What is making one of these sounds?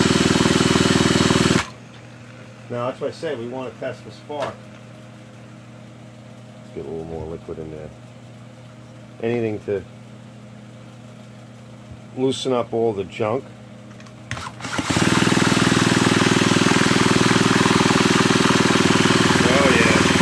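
A power drill whirs steadily.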